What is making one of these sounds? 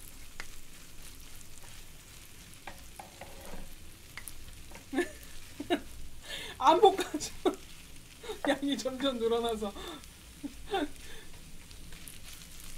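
Wooden spatulas scrape and clatter on a hot griddle.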